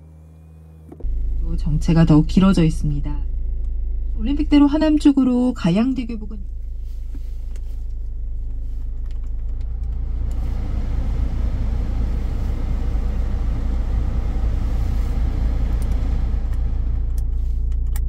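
A car engine starts and idles with a steady low rumble.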